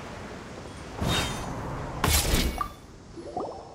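A character lands with a heavy whooshing thud.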